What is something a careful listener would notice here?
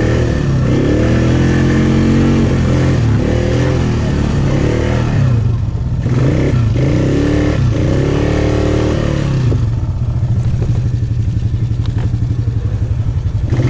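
An all-terrain vehicle engine idles and revs up and down loudly close by.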